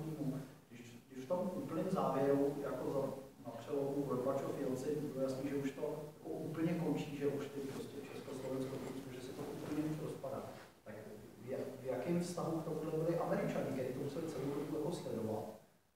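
A man speaks calmly to an audience in a large room, with a slight echo.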